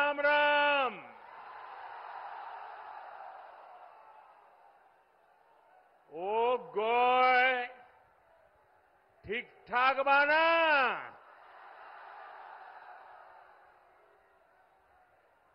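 A large crowd cheers and applauds between the phrases.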